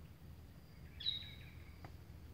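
A bird chirps sharply nearby.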